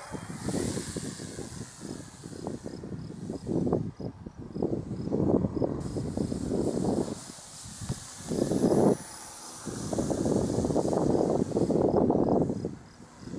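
A small model plane engine buzzes faintly overhead.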